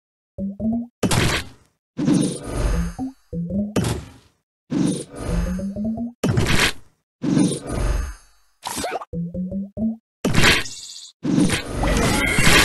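Bright whooshing bursts sound as game pieces clear.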